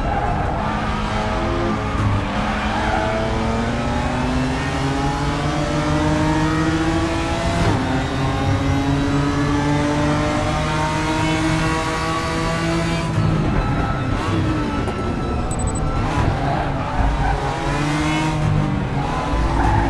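Tyres screech through the corners.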